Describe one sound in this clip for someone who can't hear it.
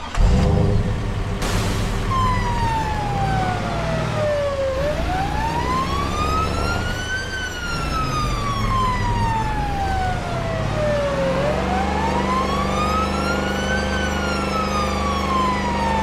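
A car engine hums as a car drives.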